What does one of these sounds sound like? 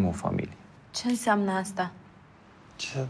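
A young woman speaks briefly in a strained voice.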